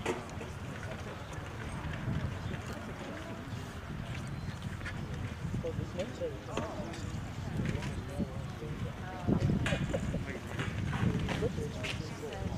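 Young people chat quietly in the open air.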